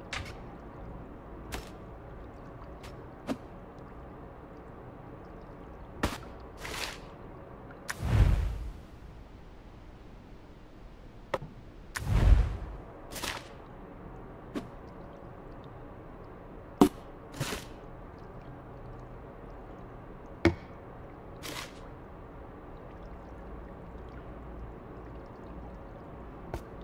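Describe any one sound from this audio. Small objects are set down with light clicks and thuds.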